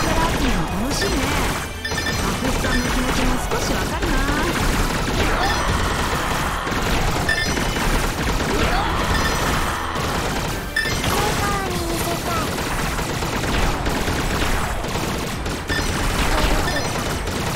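Small chimes ring as game pickups are collected.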